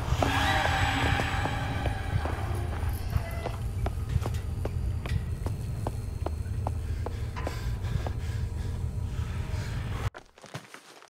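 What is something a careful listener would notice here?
Footsteps tread steadily on a hard stone floor.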